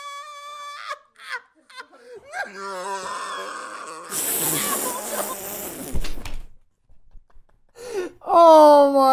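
A young man groans and exclaims loudly into a microphone.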